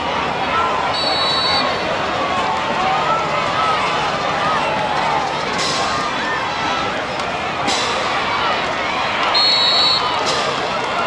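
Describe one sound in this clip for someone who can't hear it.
A referee's whistle blows shrilly in short bursts.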